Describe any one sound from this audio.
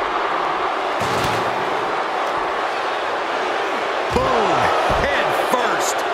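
Heavy thuds of bodies slam onto a wrestling mat.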